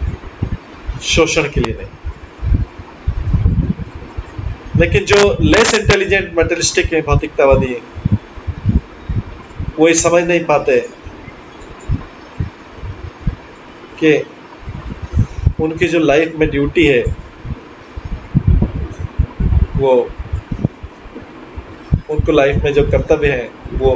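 A middle-aged man speaks calmly in short bursts through an online call.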